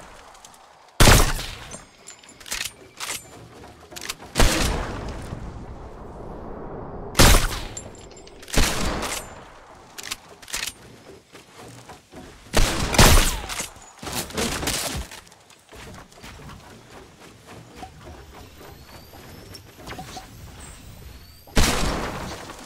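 Sniper rifle shots crack loudly and echo.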